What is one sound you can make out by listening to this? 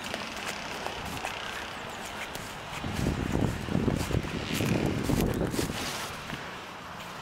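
Wind blows across the microphone outdoors in gusts.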